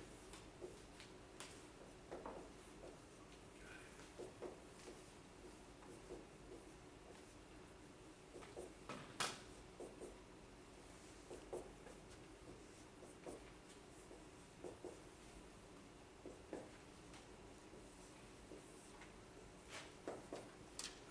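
A man lectures calmly, heard from across a room.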